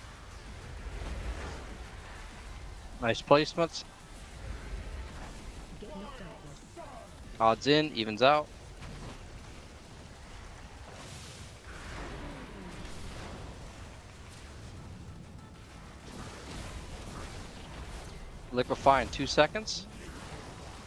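Magic spells whoosh and crackle in a busy video game battle.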